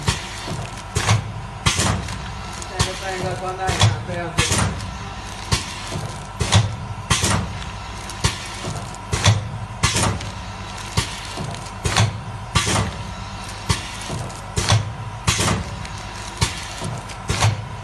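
A packing machine hums steadily.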